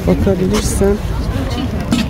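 Several adults chatter nearby in a crowd outdoors.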